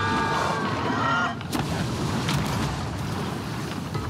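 A cannon fires with a loud boom.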